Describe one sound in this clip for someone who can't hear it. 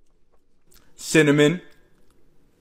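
A young man makes a short voiced sound close to a microphone.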